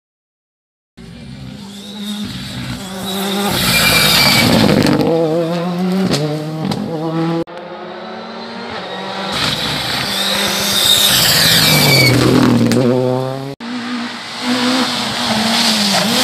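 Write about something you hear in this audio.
A rally car engine roars loudly as the car speeds past, revving and changing gear.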